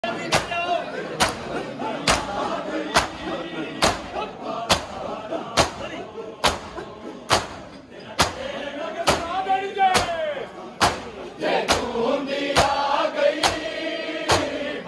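A crowd of men chant loudly together in the open air.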